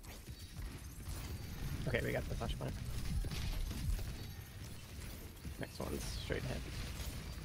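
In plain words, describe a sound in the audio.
Game sound effects crackle and whoosh.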